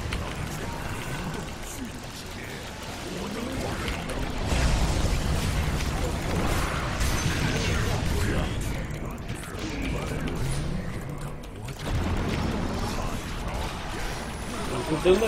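Game spell effects whoosh and crackle.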